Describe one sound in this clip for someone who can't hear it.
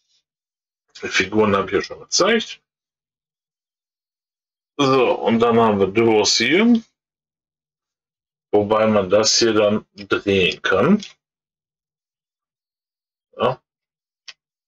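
A middle-aged man talks calmly and close to a microphone, in short bursts with pauses.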